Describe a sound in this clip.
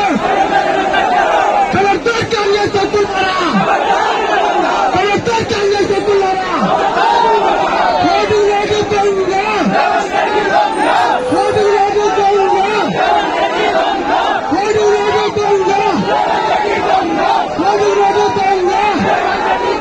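A large crowd of men shouts and clamours close by.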